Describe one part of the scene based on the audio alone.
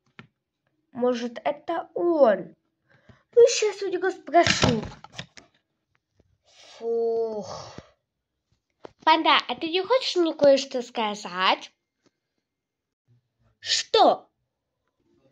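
A young boy talks close up with animation, in bursts.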